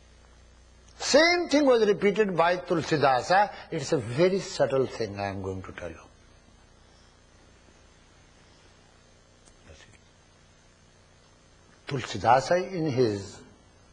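An elderly man speaks calmly and expressively, close by, with long pauses.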